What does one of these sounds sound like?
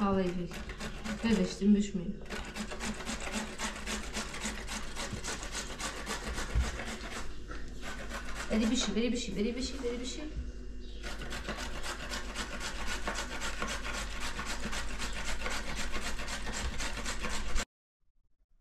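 A grater rasps quickly and steadily against vegetables.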